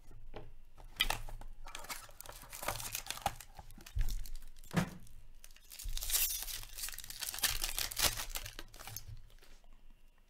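A foil wrapper crinkles and tears as a pack is ripped open.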